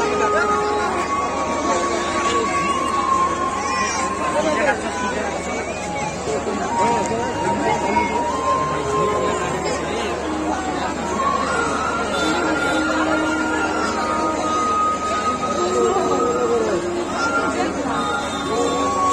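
A large crowd chatters and murmurs all around, close by, outdoors.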